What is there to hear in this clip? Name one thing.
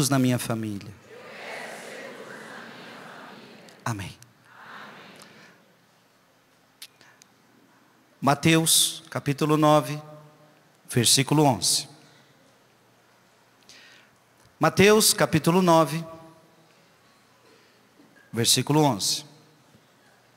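A man speaks slowly and calmly through a microphone, with long pauses.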